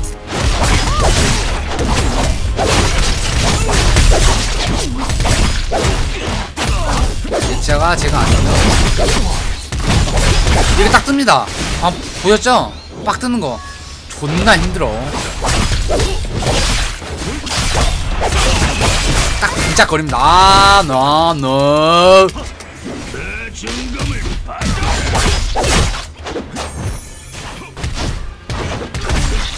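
Game sword strikes and spell effects clash and crackle.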